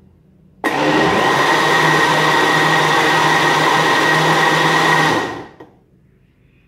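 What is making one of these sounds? A blender motor whirs loudly, then winds down.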